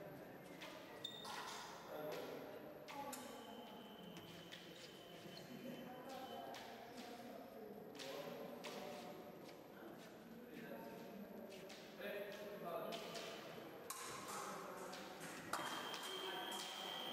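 Fencing blades clink and clash together.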